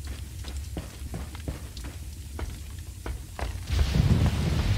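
Boots clunk on the rungs of a wooden ladder.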